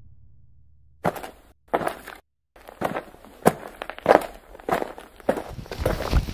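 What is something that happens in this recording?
A man's footsteps tread on pavement.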